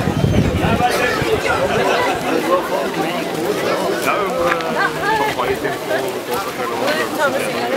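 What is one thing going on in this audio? A mixed choir sings together through loudspeakers outdoors.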